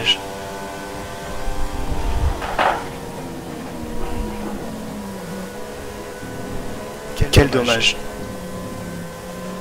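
A racing car engine whines at high revs.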